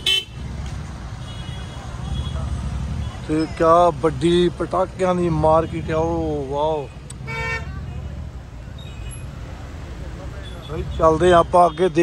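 Car engines idle and rumble in slow, crowded traffic.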